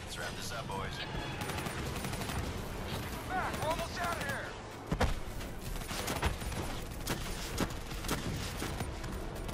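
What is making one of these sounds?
Gunfire rattles in sharp bursts.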